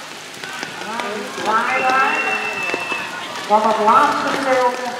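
A man on the carriage shouts to the horses.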